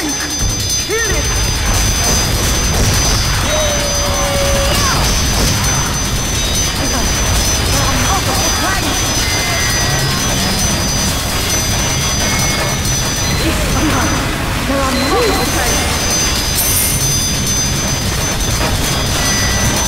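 Guns fire rapidly in a loud, chaotic battle.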